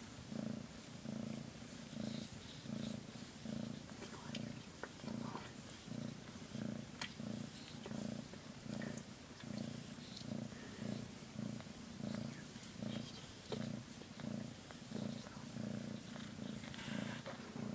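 A hand rubs softly against a cat's fur.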